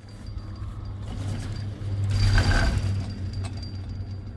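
A chairlift rattles and clatters as it rolls over the wheels on a lift tower.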